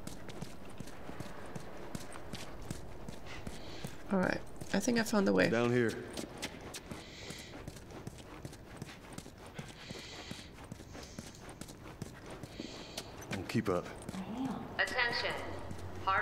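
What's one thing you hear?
Quick footsteps run over hard ground.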